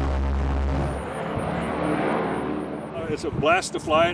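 A propeller plane flies overhead, its engine droning and fading.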